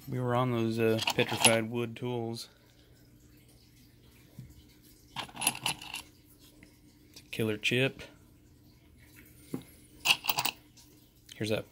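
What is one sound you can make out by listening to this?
Small stones clink and rattle as a hand rummages through a bowl of them.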